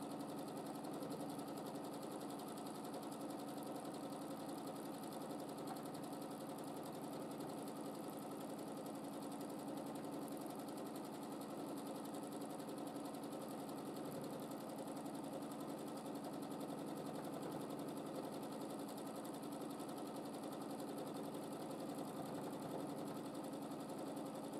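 A sewing machine runs steadily, its needle rapidly stitching fabric.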